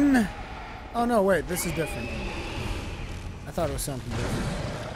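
A monster shrieks loudly.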